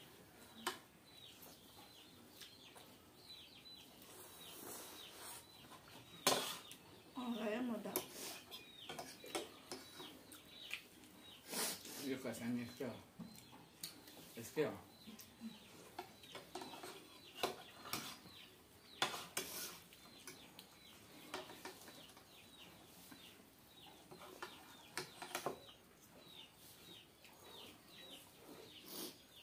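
A young man slurps noodles loudly up close.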